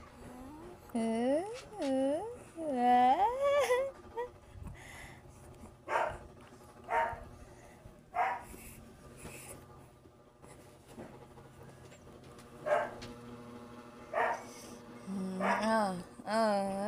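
A baby coos and babbles in high, sliding sounds close by.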